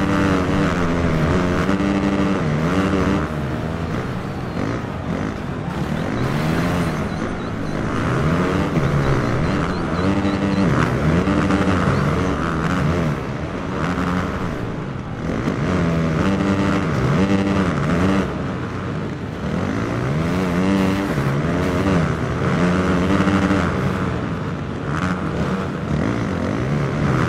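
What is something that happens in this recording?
A motorcycle engine revs and whines up and down loudly.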